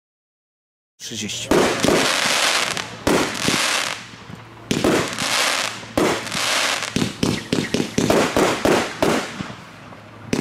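Fireworks shoot up and burst with loud bangs.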